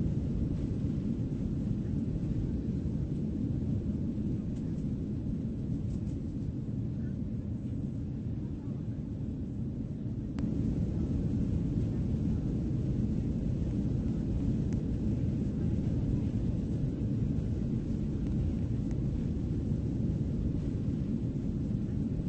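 A jet engine drones low and steadily.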